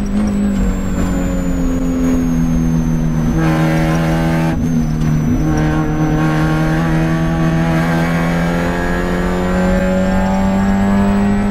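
A race car engine roars loudly from inside the cabin, dropping in pitch as the car slows and then climbing steadily as it speeds up.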